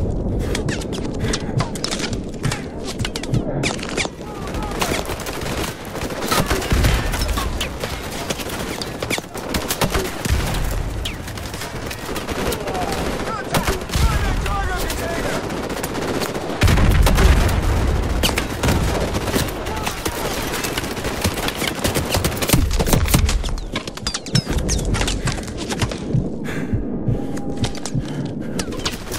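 Gunfire crackles and pops nearby throughout.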